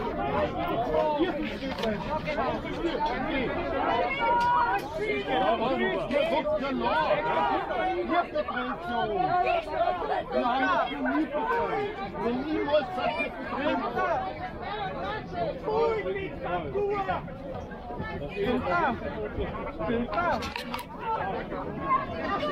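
A crowd of men and women talks and shouts loudly outdoors.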